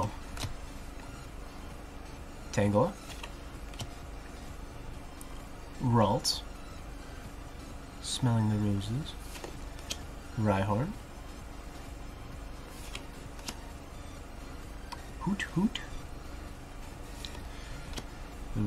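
Trading cards rustle and slide in hands.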